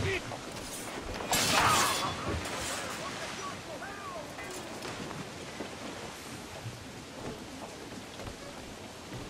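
Wind blows steadily over rushing sea water.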